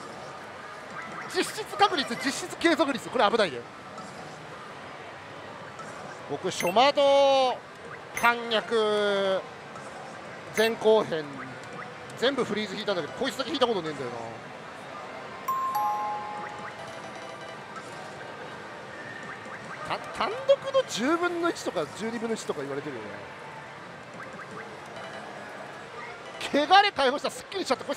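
A slot machine plays electronic music and sound effects.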